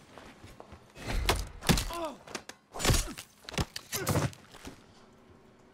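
A man screams and grunts in a struggle.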